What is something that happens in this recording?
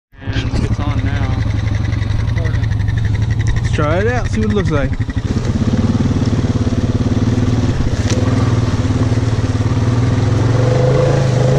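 An all-terrain vehicle engine rumbles steadily up close.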